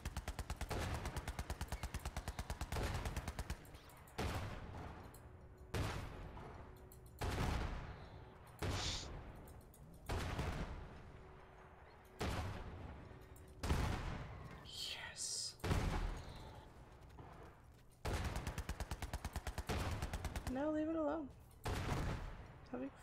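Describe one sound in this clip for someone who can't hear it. A vehicle's gun fires in rapid bursts.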